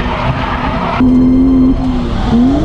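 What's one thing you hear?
A car engine revs loudly, heard from inside the car.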